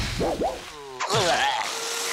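A loud crash sounds as a cartoon character slams into a rock wall.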